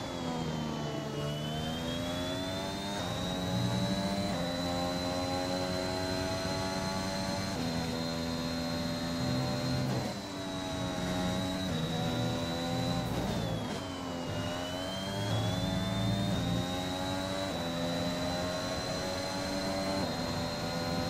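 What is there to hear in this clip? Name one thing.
A Formula One car's V6 turbo hybrid engine screams at high revs as it shifts up through the gears.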